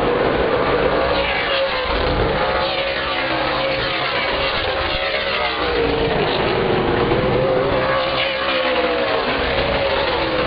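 Engines whine up and down in pitch as race cars pass close by.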